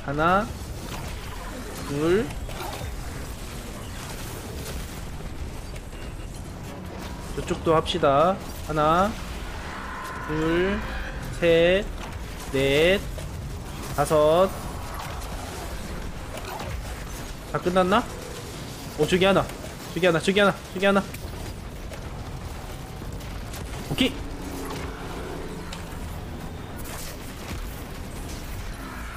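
Rapid gunfire blasts and energy weapons fire in bursts.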